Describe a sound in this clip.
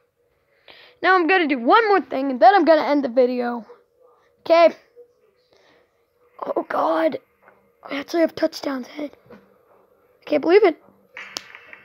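A young boy talks with animation, close to a microphone.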